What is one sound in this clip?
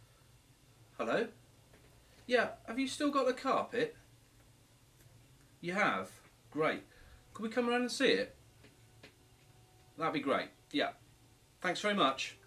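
A middle-aged man talks on a phone close by, in short bursts with pauses.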